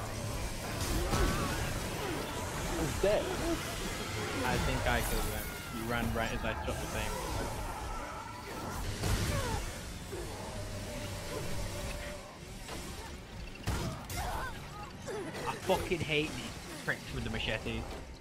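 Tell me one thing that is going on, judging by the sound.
Game monsters growl and shriek.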